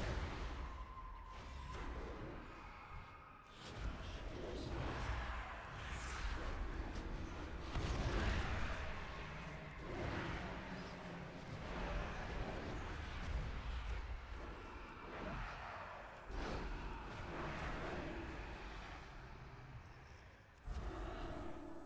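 Magic blasts and weapon blows crash and boom in a fight.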